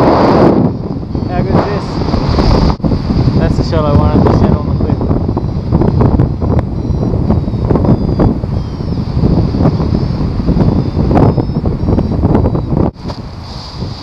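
Strong wind rushes and buffets loudly past the microphone.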